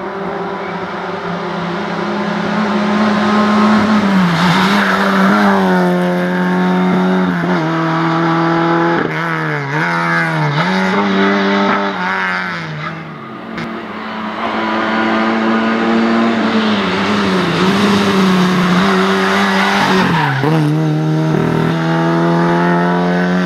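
A rally car engine roars loudly at high revs, rising and dropping with each gear change.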